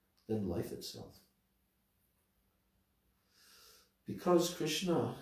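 An elderly man speaks with feeling into a microphone, close up.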